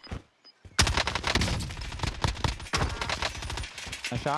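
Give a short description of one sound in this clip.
Rifle shots crack in rapid bursts in a video game.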